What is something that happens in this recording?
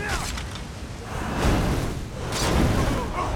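A frosty blast hisses.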